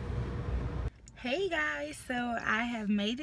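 A young woman speaks cheerfully and close to a phone's microphone.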